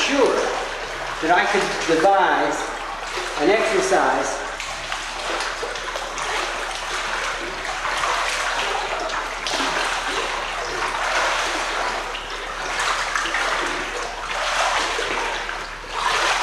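Water splashes as a swimmer wades and paddles.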